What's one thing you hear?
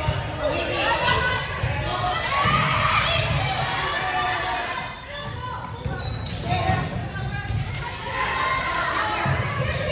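A volleyball thumps off players' hands.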